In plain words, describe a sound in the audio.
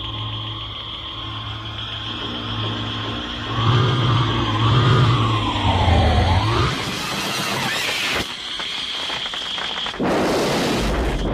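An eerie electronic hum drones steadily with warbling, sliding tones.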